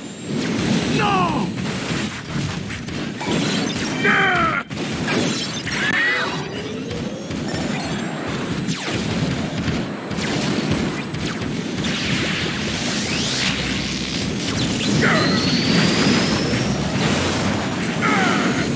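Laser blasts zap and explosions boom.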